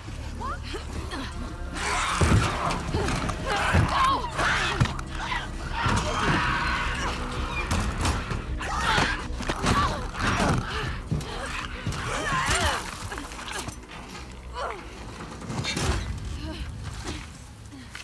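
Loud thuds and impacts of a violent struggle ring out.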